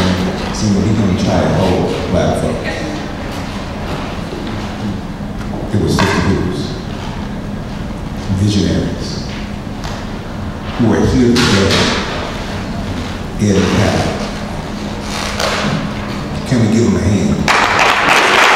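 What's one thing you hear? A man speaks into a microphone through loudspeakers, in bursts with pauses.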